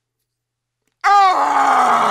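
A young man screams loudly in terror.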